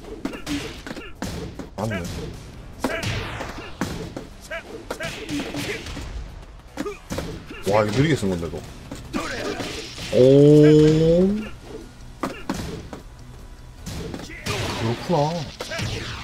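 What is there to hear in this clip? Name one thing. Punches and kicks land with sharp, heavy thuds, again and again.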